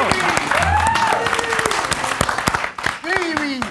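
Several people clap their hands.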